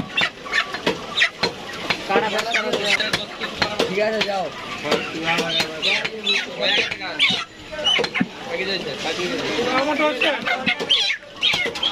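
A cleaver chops meat on a wooden block with sharp thuds.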